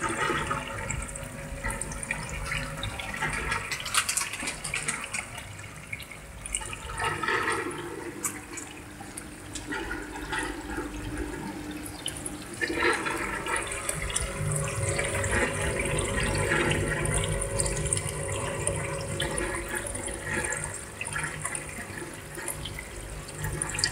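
Water trickles from a pipe into a tank.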